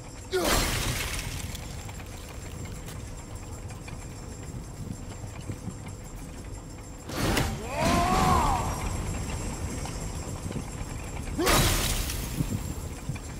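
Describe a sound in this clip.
A heavy metal blow clangs and rings out, echoing.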